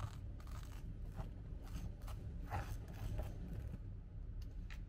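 A butter knife scrapes across crisp toast.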